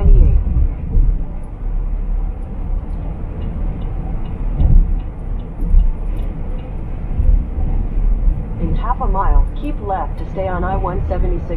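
A car's tyres rumble steadily on a highway as it drives along.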